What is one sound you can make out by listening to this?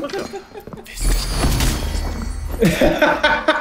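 A magic spell crackles and fizzes.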